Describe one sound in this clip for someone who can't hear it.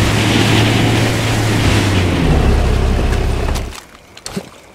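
A boat motor drones loudly, then cuts off.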